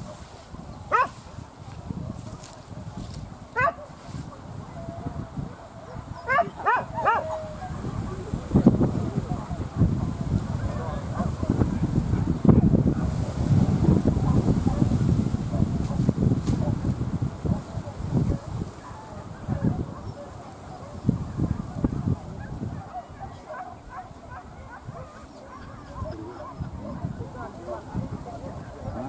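Wind blows across an open hillside, rumbling in gusts.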